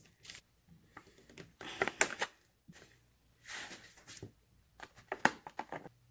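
A knife cuts through cheese on a board.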